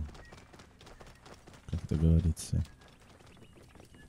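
A camel's hooves thud on sand.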